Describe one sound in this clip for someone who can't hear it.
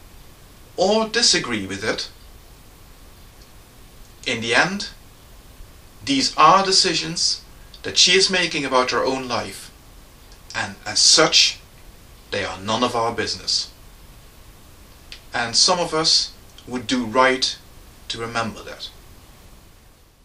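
A man speaks calmly and closely, in short phrases with pauses.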